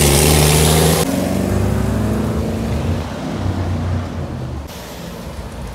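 A classic car's engine roars as it passes.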